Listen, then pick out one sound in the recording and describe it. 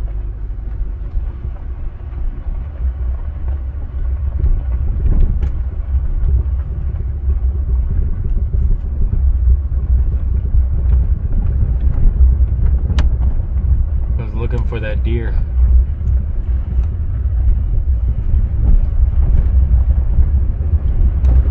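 A vehicle engine rumbles steadily as it drives slowly.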